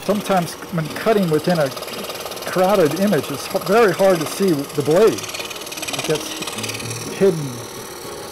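A scroll saw buzzes as it cuts through wood.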